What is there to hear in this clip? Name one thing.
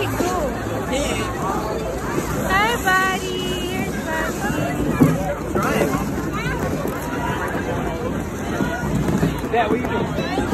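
A crowd of children and adults chatter and shout with excitement nearby.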